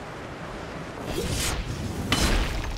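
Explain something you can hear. A magical blast crackles and booms.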